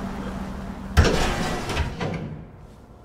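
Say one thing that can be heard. A heavy metal door slides open with a loud clunk.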